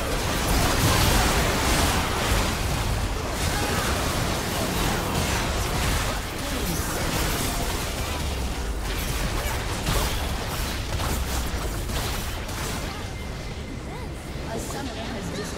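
Game spells whoosh, zap and crackle in a busy battle.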